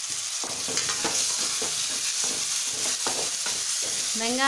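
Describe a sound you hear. A spatula scrapes and stirs against a metal pan.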